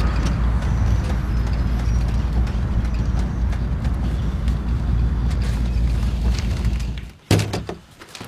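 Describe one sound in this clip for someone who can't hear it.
A vehicle engine rumbles steadily from inside.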